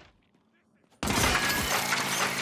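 A rifle fires loudly in rapid bursts.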